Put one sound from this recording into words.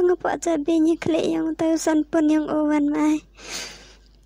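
A young woman speaks with animation, close up.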